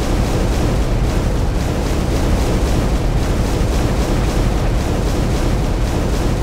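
Lava bubbles and roars steadily.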